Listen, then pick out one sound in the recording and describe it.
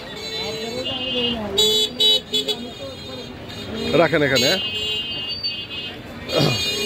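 Men and women talk nearby.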